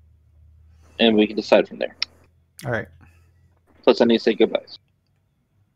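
A second man talks calmly over an online call.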